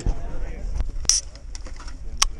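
A drink can hisses open with a sharp pop.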